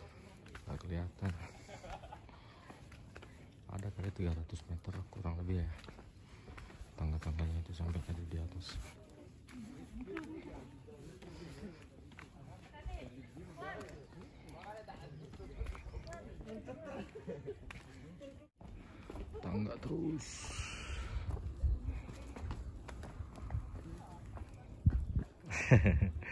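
Footsteps crunch on a rough dirt and stone path.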